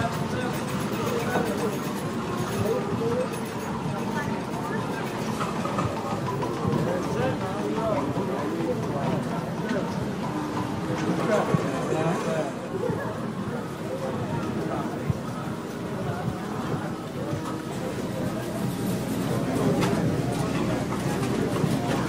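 Slot machines chime and jingle with electronic tones.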